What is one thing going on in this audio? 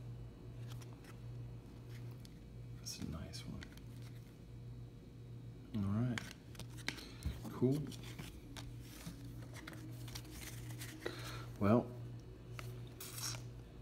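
Glossy trading cards rustle and tap softly as hands sort through them.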